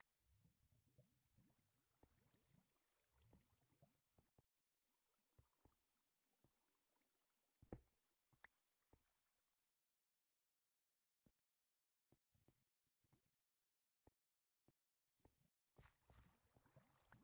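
Footsteps thud softly on stone.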